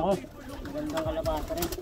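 A pigeon flaps its wings.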